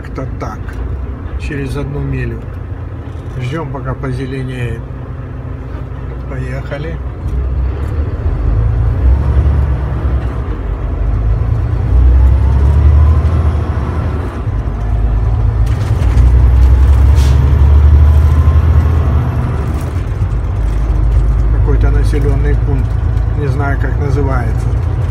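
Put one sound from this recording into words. A vehicle engine rumbles low and grows louder as it speeds up.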